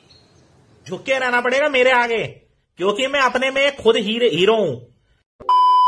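A man talks with animation close to a phone microphone.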